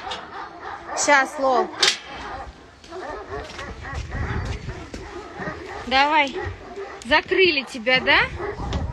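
A dog whines and yelps in high, wavering cries.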